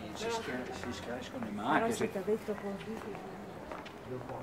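A woman talks close by as she walks past.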